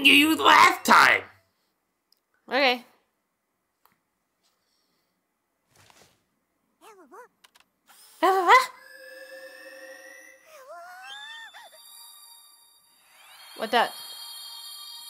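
A ghostly creature lets out warbling, eerie cries.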